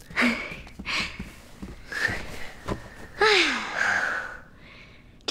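A woman laughs heartily nearby.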